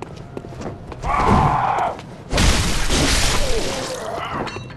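A blade slashes and strikes flesh with a wet thud.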